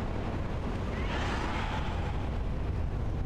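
A dragon screeches in the distance.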